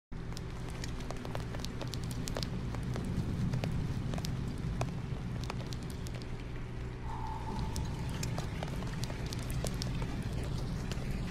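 Raindrops patter and drip on a window pane.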